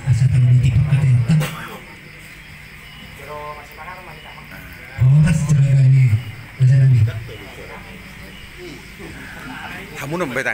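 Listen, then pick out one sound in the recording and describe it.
An older man speaks into a microphone and is heard through a loudspeaker.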